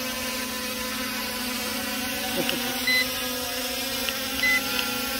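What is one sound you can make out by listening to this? A drone buzzes steadily as it hovers overhead.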